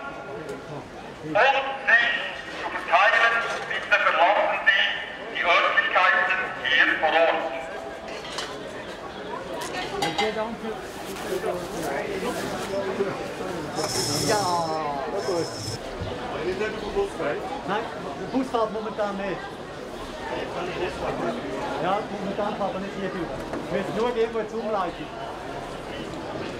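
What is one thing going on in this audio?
A crowd of men and women murmurs and talks nearby.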